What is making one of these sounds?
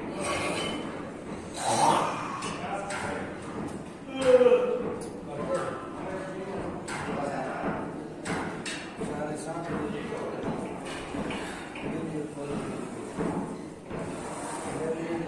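Weight plates on a barbell clink softly as the bar is lowered and pressed up.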